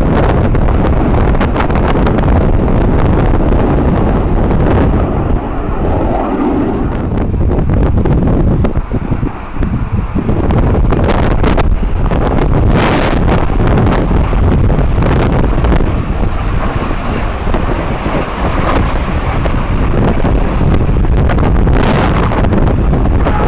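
Small propeller planes drone high overhead in the distance.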